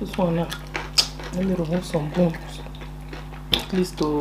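Fingers squish soft fufu dough and soup.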